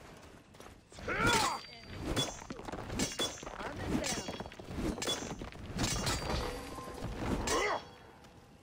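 Heavy blows strike a stone statue again and again.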